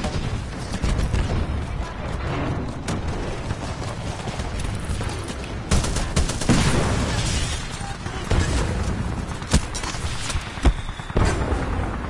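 A heavy rumble of explosions and machinery booms low.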